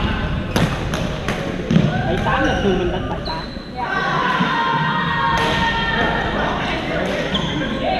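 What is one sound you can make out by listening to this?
Paddles strike balls with sharp hollow pops in a large echoing gym.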